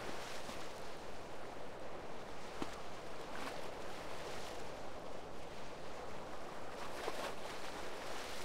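Footsteps tap steadily on hard pavement.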